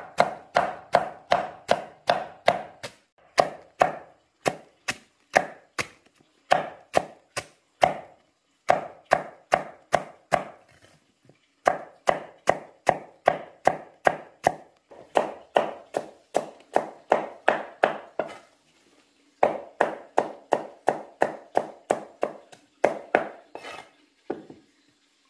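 A blade chops rapidly and steadily against a wooden block.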